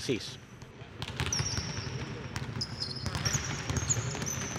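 Basketballs bounce on a wooden court in a large echoing hall.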